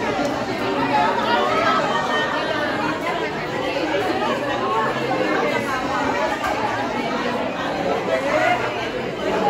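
Many women chatter at once close by, a busy crowd murmur.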